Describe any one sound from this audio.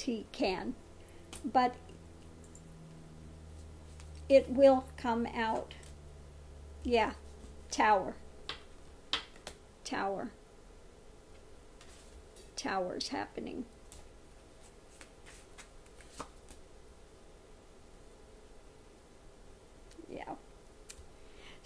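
A middle-aged woman speaks calmly and close by, in short bursts with pauses.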